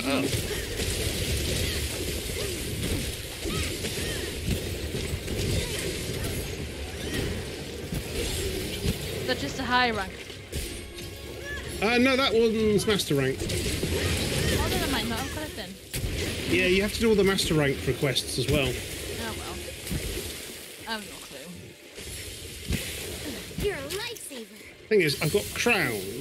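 Blades slash and strike a large creature again and again in a fast fight.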